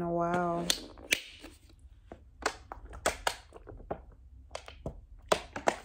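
A plastic bottle crinkles in a hand.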